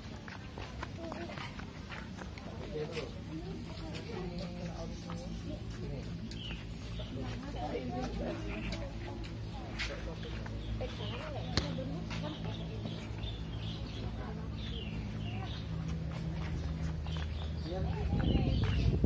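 A young girl talks nearby.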